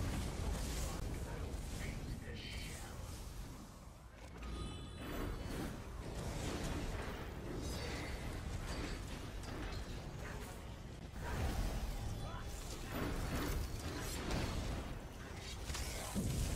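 Heavy blows and impacts thud repeatedly.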